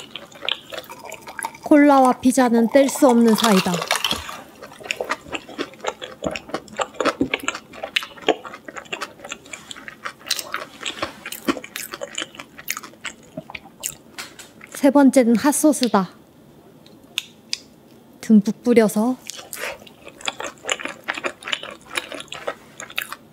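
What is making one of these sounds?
A young woman chews and smacks her lips with wet clicks close to a microphone.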